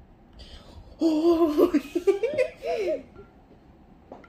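Young girls giggle and laugh close by.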